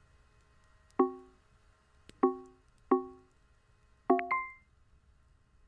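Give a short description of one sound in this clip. Short soft menu chimes sound several times as buttons are selected.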